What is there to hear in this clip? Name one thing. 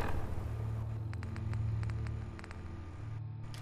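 Menu clicks tick softly in quick succession.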